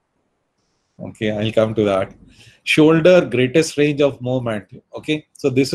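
An elderly man speaks calmly over an online call.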